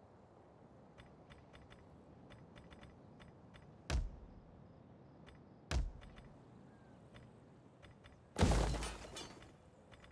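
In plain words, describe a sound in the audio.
Soft game interface clicks tick repeatedly.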